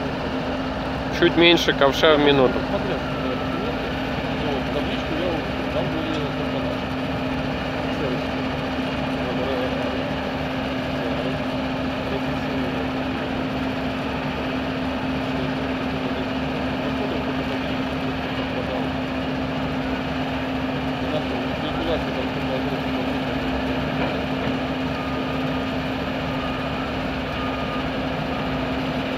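A screening machine rattles as gravel runs through it.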